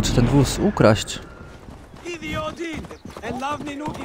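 A horse gallops past with clopping hooves.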